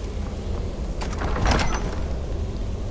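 A heavy iron door grinds and clanks open.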